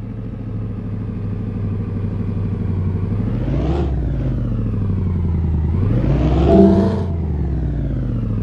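A truck engine idles and then revs up and down as the truck pulls away.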